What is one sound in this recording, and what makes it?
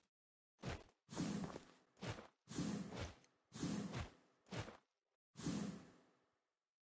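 A blade swishes through the air in quick swings.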